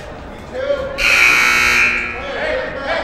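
A referee blows a sharp whistle in an echoing gym.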